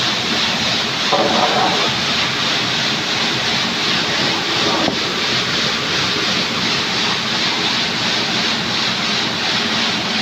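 A stone slab scrapes across other slabs.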